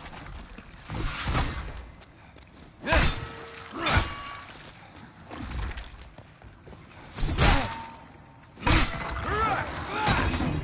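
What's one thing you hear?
A sword strikes a creature with heavy, wet impacts.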